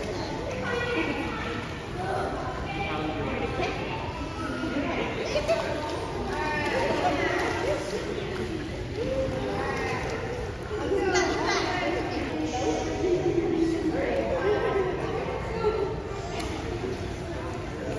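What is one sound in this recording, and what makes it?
A young woman talks softly and playfully to a baby nearby.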